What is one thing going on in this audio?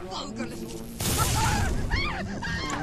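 Electricity crackles and buzzes in a sharp burst.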